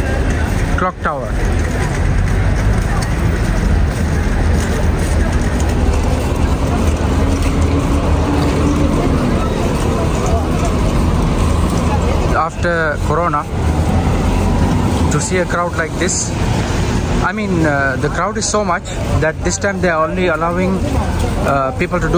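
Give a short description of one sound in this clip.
A crowd murmurs steadily outdoors.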